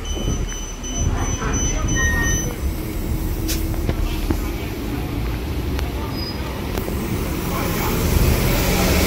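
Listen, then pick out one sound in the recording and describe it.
A bus engine idles close by.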